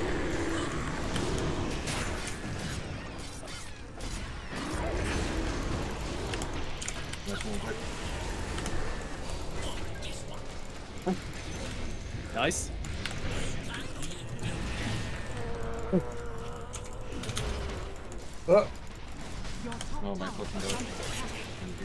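Spell blasts and impacts crackle and boom in a game battle.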